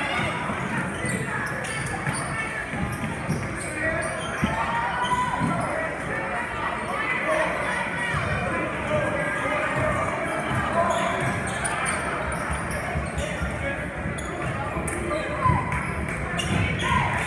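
A basketball thumps as it is dribbled.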